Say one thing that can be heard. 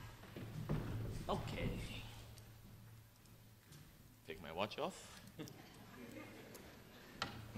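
A piano plays softly in a large hall.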